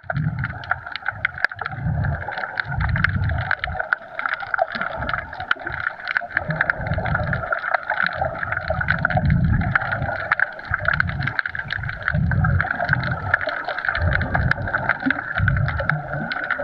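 Water rushes and swirls in a muffled underwater hush.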